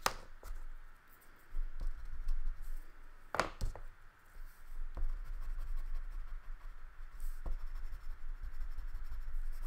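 A crayon scratches and rubs on paper.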